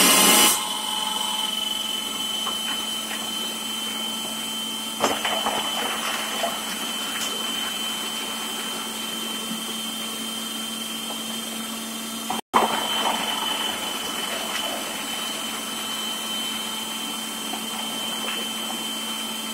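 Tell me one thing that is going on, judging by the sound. Onion pieces thud and rattle as they drop into a spinning food processor.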